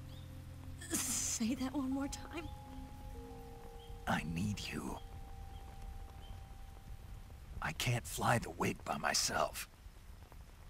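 A young woman speaks softly and pleadingly close by.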